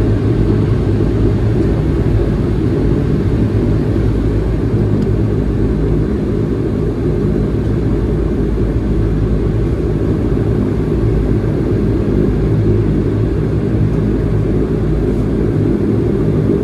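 Aircraft wheels rumble along the runway.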